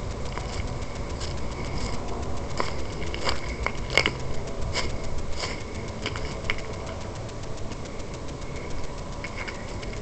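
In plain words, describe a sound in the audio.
Footsteps crunch over leaves and paving outdoors.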